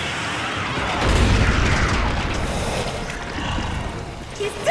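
A monster roars loudly.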